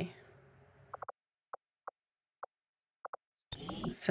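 Soft interface clicks tick several times.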